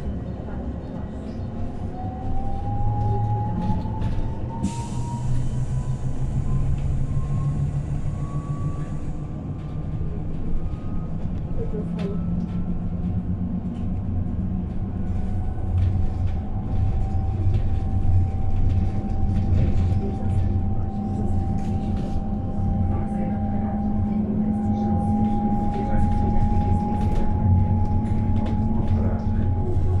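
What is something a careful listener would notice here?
An electric bus hums steadily while standing close by, with a faint rising whine.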